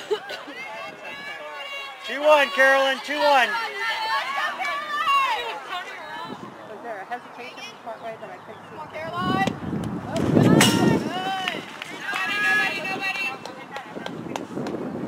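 Young women shout and cheer outdoors.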